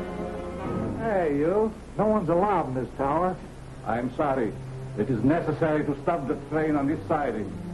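A man speaks sharply.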